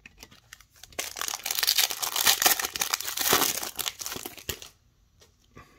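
A foil wrapper crinkles and tears as it is ripped open.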